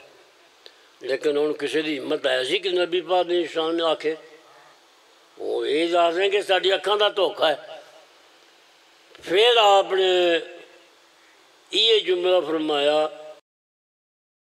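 An elderly man speaks with passion into a microphone, in bursts with pauses.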